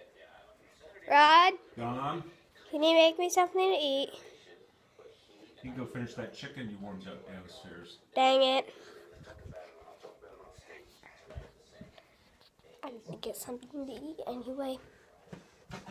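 A young boy talks with animation close to a phone microphone, his voice sometimes jumping high.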